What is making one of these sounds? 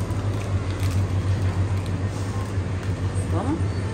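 A plastic candy wrapper crinkles in someone's hands.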